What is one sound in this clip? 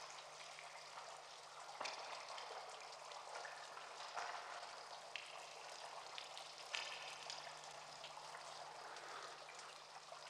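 Water trickles and splashes down into a large concrete pipe.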